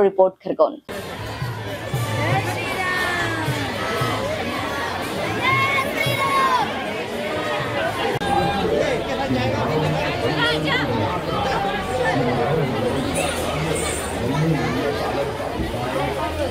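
A large crowd chatters and calls out all around.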